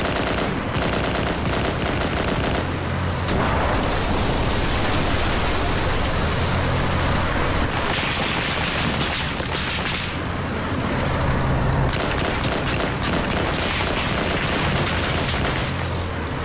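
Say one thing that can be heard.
Fires roar and crackle.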